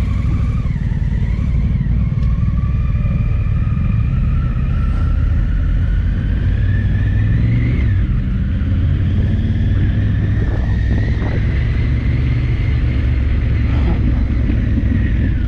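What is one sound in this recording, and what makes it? Wind buffets a microphone loudly.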